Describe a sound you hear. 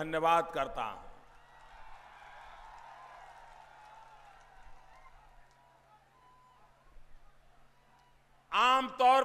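A large crowd cheers far off.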